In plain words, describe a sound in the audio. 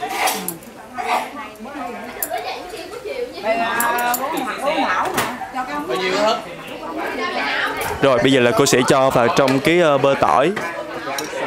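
Metal utensils clink against a pan.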